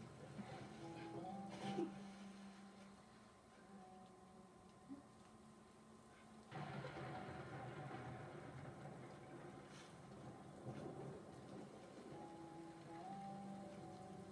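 Video game music and sound effects play from a television speaker.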